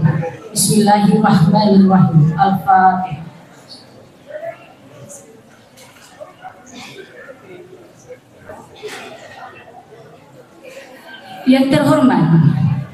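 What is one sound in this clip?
A middle-aged woman speaks calmly into a microphone over a loudspeaker system.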